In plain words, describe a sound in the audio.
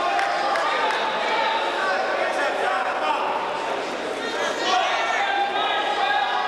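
Wrestlers' bodies scuffle and thump on a mat.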